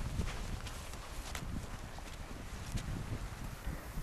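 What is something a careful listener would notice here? Footsteps swish through dry grass.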